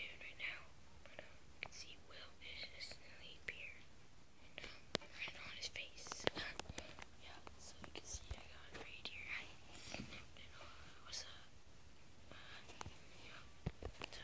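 A young boy whispers close by.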